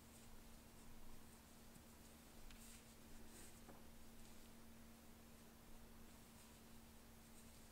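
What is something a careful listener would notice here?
Yarn rustles softly as it is pulled through stitches.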